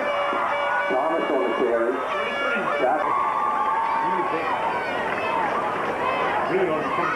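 A crowd cheers and shouts from the stands.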